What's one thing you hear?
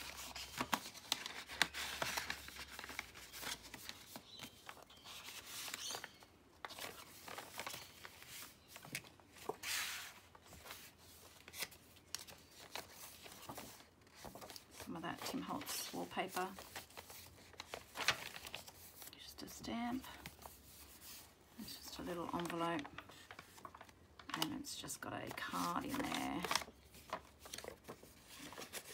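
Paper rustles and crinkles as pages are turned and handled.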